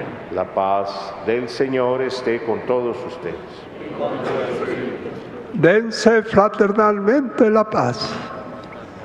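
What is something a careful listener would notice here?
An elderly man speaks with animation into a microphone in a large echoing hall.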